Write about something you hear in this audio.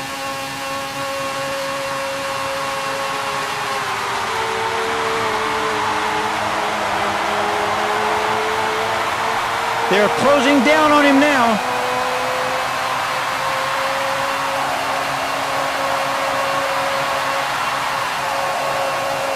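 A racing car engine whines steadily at high speed.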